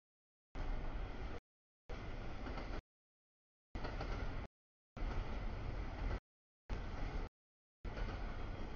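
A freight train rolls past.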